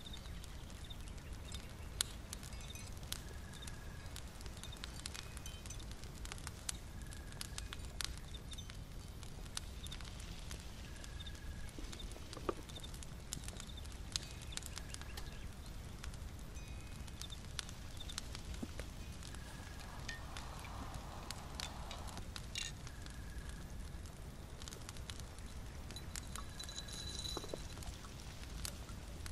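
A small fire crackles softly.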